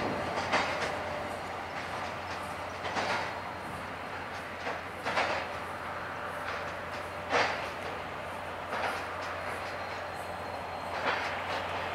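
Coal wagon wheels clunk over rail joints on a bridge.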